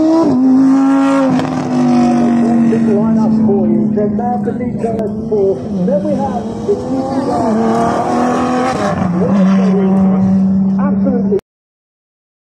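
A sports car engine roars loudly as the car speeds past.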